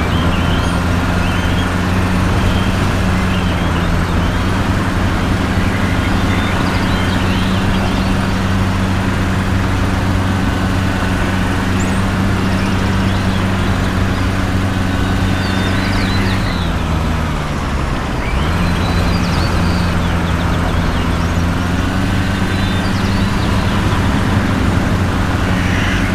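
Tyres roll over the road with a constant rushing noise.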